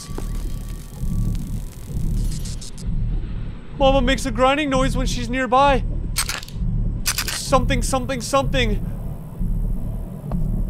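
A young man talks closely into a microphone with animation.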